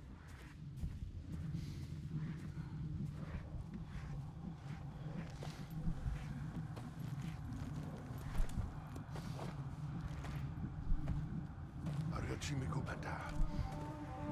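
Leaves rustle as someone creeps through tall plants.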